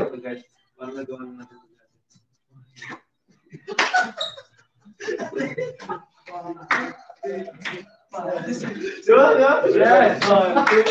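Young men talk and joke with animation, heard through a microphone.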